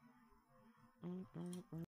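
A young man speaks briefly, close to a microphone.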